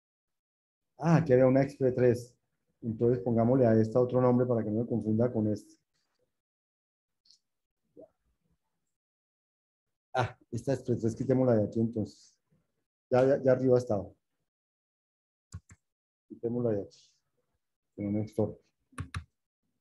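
A man speaks calmly over an online call, explaining in pauses.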